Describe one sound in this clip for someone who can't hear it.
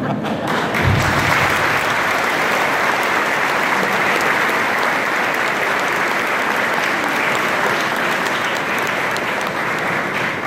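A crowd applauds loudly in an echoing hall.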